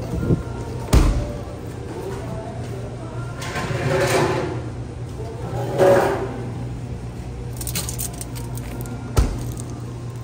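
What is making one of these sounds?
A fridge door clunks open and shut.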